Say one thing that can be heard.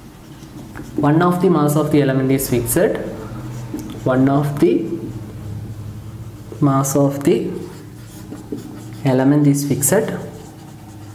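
A young man speaks calmly, in short phrases, close by.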